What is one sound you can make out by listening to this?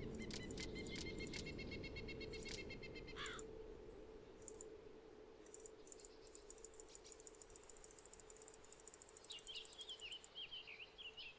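Quick, rapid clicks and ticks come from a game menu.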